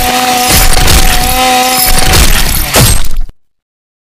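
A chainsaw slices into a body with a wet crunch.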